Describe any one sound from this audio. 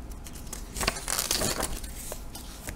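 A sheet of paper rustles as a page is flipped over.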